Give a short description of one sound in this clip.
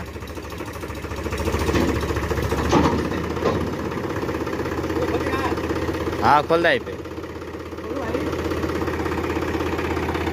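A tractor engine idles with a steady, rapid chugging.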